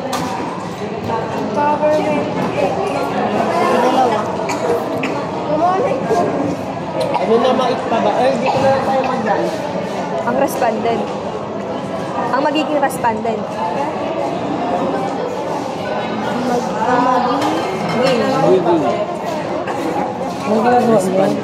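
Many young people chatter in a large echoing hall.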